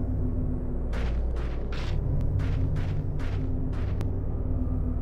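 Footsteps fall at an even pace.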